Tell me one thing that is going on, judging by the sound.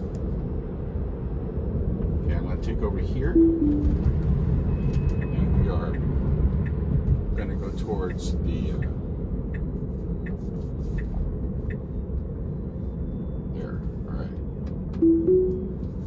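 Tyres roll and rumble steadily on a road, heard from inside a moving car.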